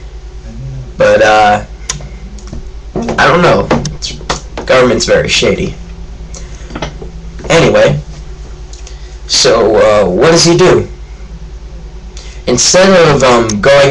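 A teenage boy talks casually and close to a microphone, in short bursts.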